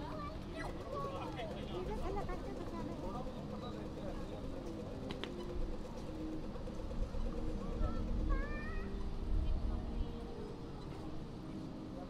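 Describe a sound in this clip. A crowd chatters nearby outdoors.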